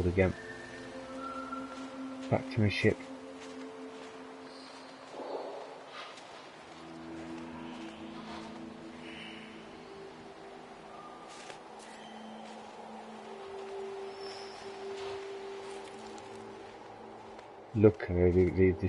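Soft, sustained electronic music plays in calm, held tones.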